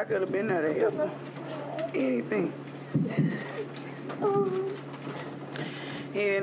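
A woman speaks emotionally into microphones, close by.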